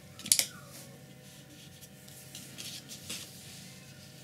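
A brush dabs and scratches softly on paper.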